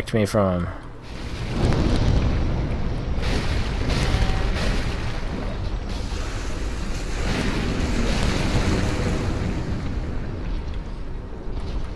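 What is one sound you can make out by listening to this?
A sword swings and strikes with a heavy clang.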